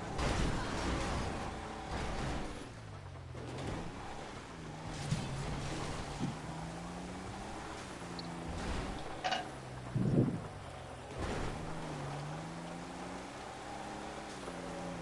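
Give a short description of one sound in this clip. A truck engine revs and roars, rising and falling in pitch.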